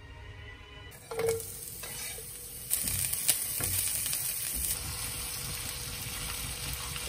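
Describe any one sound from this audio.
Shallots sizzle in a hot pan.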